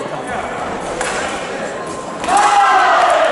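Fencing blades clash and clatter.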